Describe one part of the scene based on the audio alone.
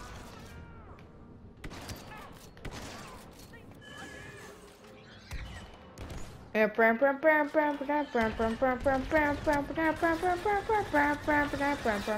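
Blaster guns fire in short bursts of sharp zaps.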